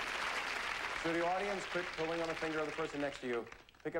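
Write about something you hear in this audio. A man speaks calmly into a microphone, as if presenting.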